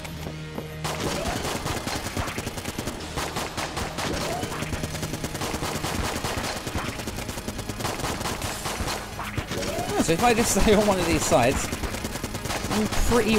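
Rapid gunfire rattles and pops without pause.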